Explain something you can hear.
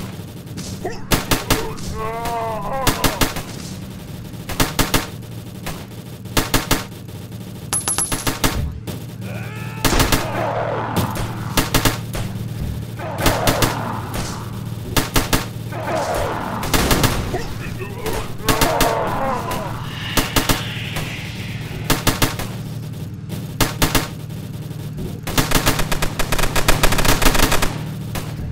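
Guns fire in short rapid bursts.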